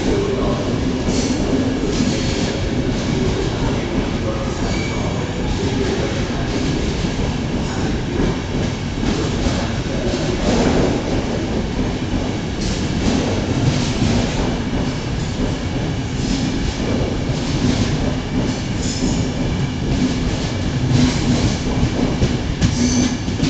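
A passenger train rumbles past, close by.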